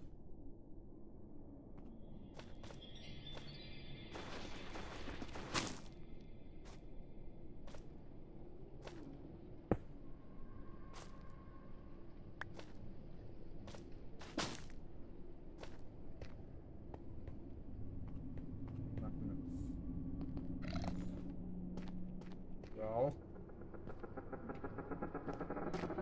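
Footsteps tap steadily on hard stone.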